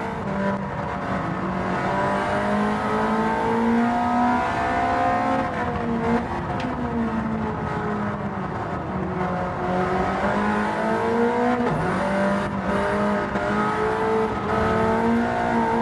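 A racing car engine roars steadily, its pitch rising and falling as the gears shift.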